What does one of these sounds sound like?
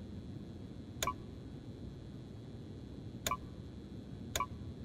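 Keypad buttons beep sharply as they are pressed.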